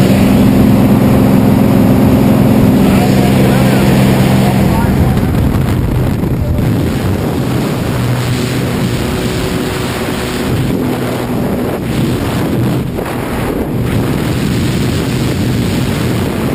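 A small plane's engine drones steadily and loudly.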